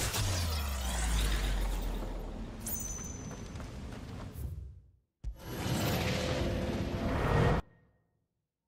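A glowing portal hums and whooshes loudly.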